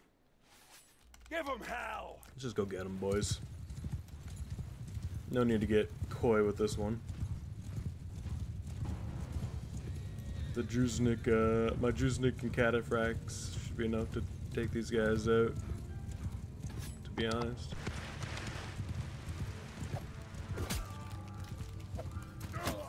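Horses gallop in a large group with rumbling hooves.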